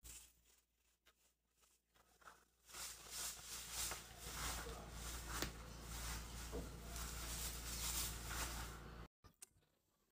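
Paper shreds rustle and crinkle as hands stuff them into a box.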